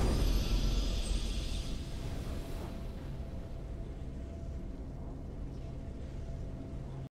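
A triumphant game fanfare swells and then fades to a low hum.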